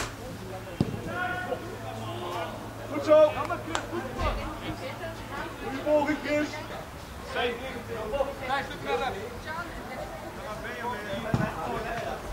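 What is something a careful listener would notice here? Young players shout and call out to each other across an open outdoor pitch.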